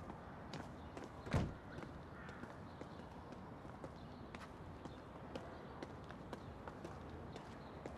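Footsteps tread along a paved path outdoors.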